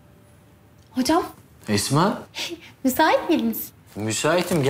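A young woman asks questions nearby.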